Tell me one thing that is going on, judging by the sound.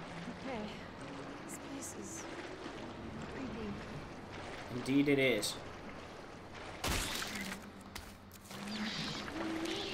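Footsteps splash slowly through shallow water.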